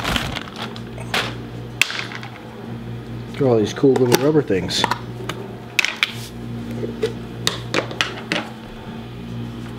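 Plastic caps click and rattle as they are pulled off metal parts.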